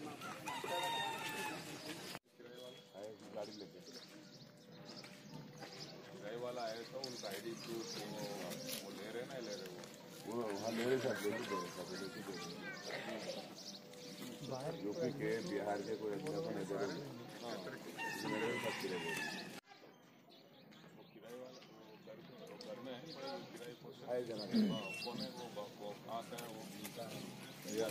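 Several men talk over one another nearby, outdoors.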